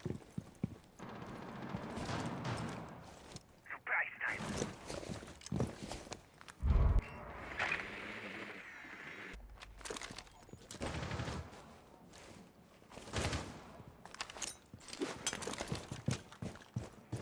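Footsteps thud across a hard floor.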